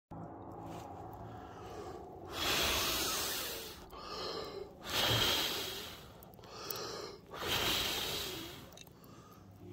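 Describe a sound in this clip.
Glowing embers crackle softly.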